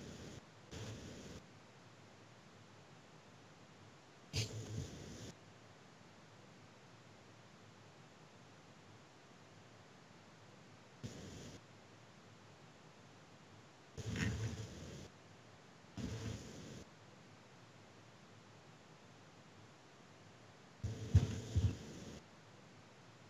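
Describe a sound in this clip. A teenage boy speaks in short bursts over an online call.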